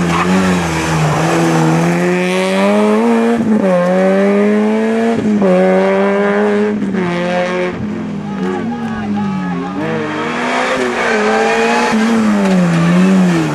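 A rally car engine revs hard and climbs through the gears.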